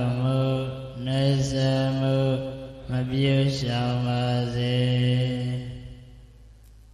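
A young man chants in a steady, drawn-out voice through a microphone.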